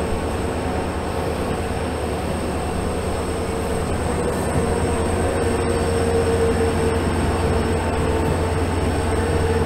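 Train wheels clatter and rumble over the rails.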